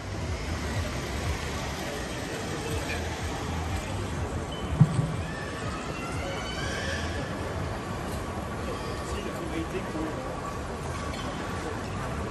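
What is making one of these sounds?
Suitcase wheels roll over a hard floor.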